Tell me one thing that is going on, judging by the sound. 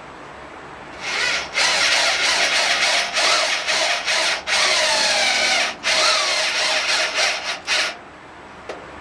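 A power tool whirs in short bursts.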